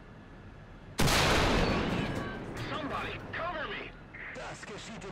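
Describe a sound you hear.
A tank cannon fires with a loud boom that echoes away.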